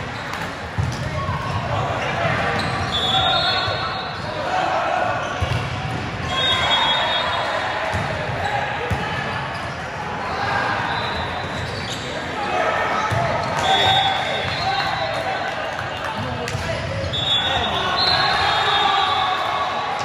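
Young men call out loudly to one another.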